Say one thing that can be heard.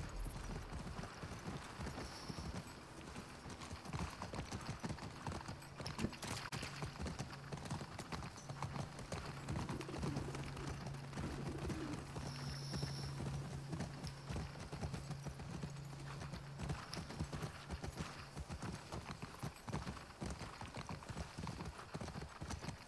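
A horse gallops with quick, heavy hoofbeats.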